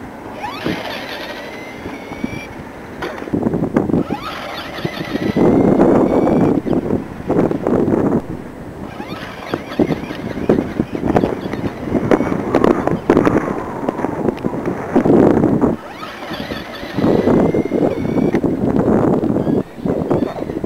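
Small tyres rumble on asphalt.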